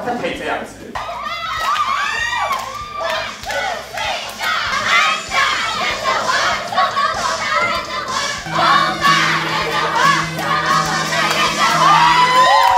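A young woman shouts with excitement close by.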